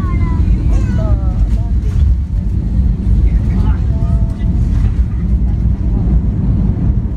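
An airliner's engines roar with a deep, steady rumble, heard from inside the cabin.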